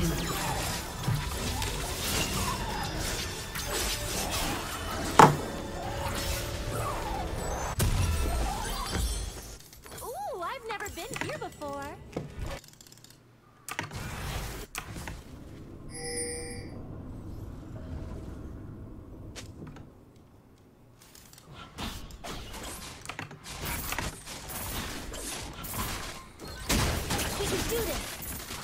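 A young woman talks into a microphone with animation.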